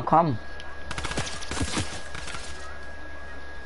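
A game effect fizzes and crackles briefly.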